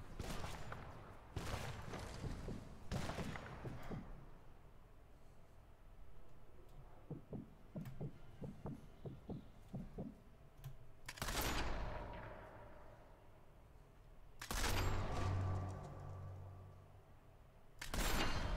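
A rifle fires loud shots that echo and slowly fade.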